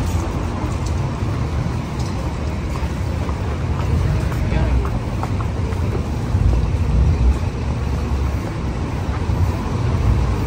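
City traffic rumbles steadily in the distance.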